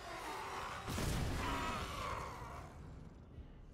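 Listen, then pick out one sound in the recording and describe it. A heavy blast booms with crackling debris.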